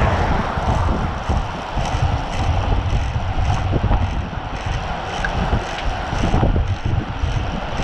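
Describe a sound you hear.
Wind buffets loudly against a microphone while riding.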